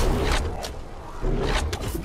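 Electric energy blasts crackle and zap.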